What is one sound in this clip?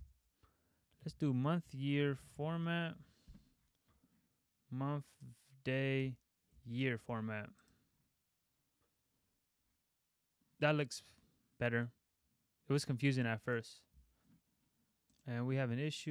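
A young man talks calmly and close to a microphone, in short bursts with pauses.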